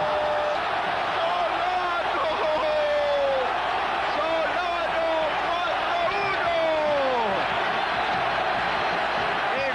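Fans in a stadium crowd whistle loudly.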